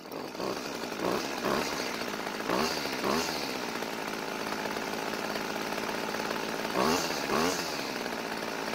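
A small petrol engine briefly revs up and back down.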